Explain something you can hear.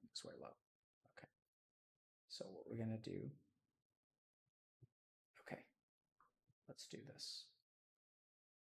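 A man speaks calmly in short bursts into a close microphone.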